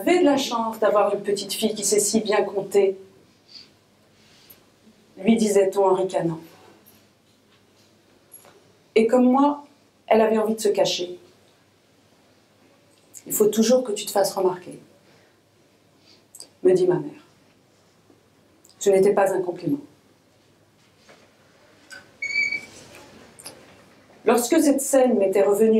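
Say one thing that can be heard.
A woman reads aloud calmly through a microphone, in short phrases with pauses.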